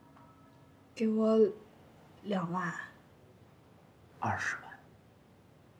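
A young woman speaks calmly nearby.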